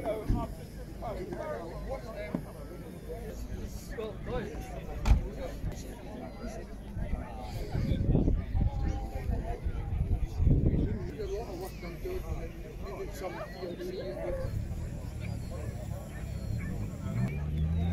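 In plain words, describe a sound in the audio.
A crowd of men and women chatter at a distance outdoors.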